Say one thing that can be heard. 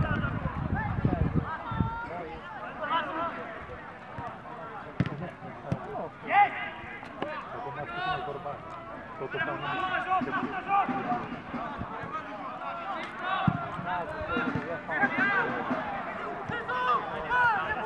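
Spectators shout and call out across an open field outdoors.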